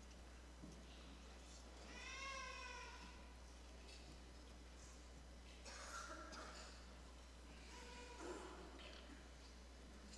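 A crowd of people murmurs and chats in a large room.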